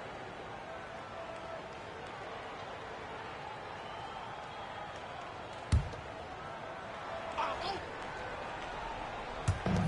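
Sneakers squeak on a basketball court.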